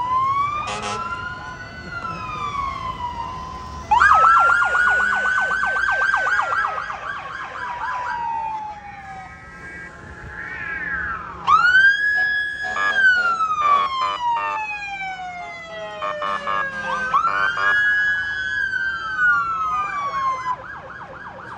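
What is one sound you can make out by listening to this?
Sirens wail, rising and falling, from passing fire trucks.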